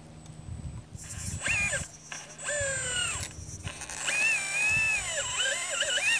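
A small digger bucket scrapes through dry soil.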